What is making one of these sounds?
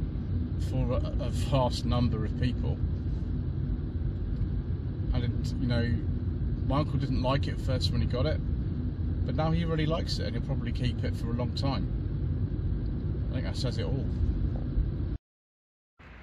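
A car engine hums steadily with road rumble from inside a moving car.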